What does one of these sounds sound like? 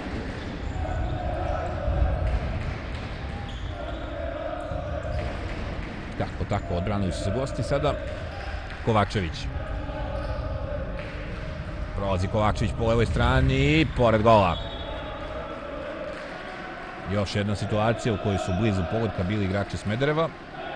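A ball thuds as players kick it.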